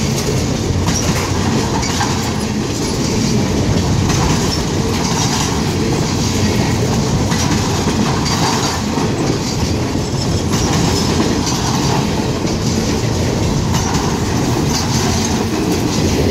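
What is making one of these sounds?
A freight train rumbles past close by at speed.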